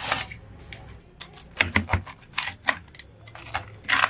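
A pizza cutter wheel rolls and crunches through a crisp crust.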